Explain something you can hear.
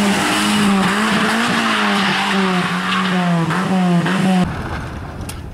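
A small rally car's engine revs hard as it speeds along a bend.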